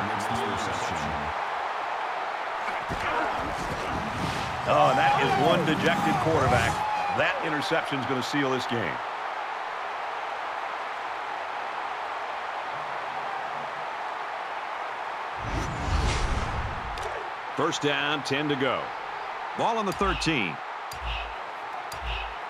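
A large crowd cheers and roars steadily in a big open stadium.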